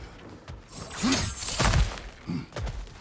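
A heavy body lands with a loud thump.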